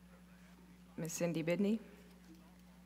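A woman speaks briefly through a microphone.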